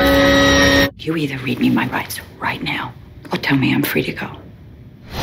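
A woman speaks calmly and firmly.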